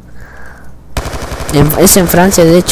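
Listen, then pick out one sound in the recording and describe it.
Rapid gunfire rattles in a quick burst.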